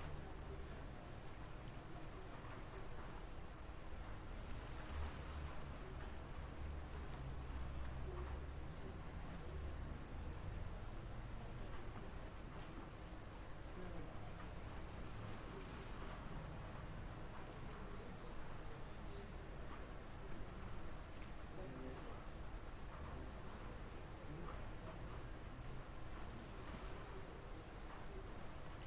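Calm water laps gently against a small boat's hull.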